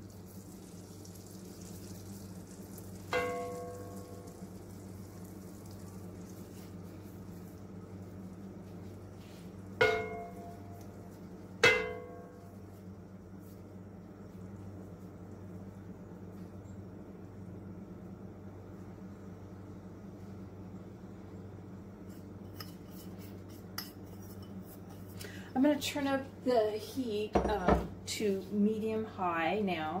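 Hot oil sizzles steadily in a pan.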